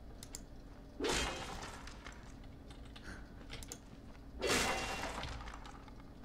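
Swords swish and strike in quick combat.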